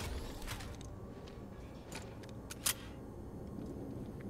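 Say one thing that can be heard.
A metal mechanism clicks and clanks as it opens.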